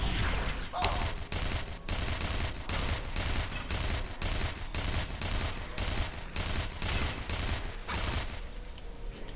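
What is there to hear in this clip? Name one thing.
Blows strike a creature in rapid rhythm.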